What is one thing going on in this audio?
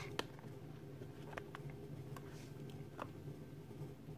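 A cardboard box is set down on a table with a soft tap.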